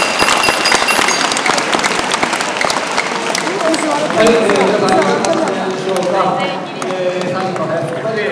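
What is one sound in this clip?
Wooden mallets thump into a mortar in an echoing hall.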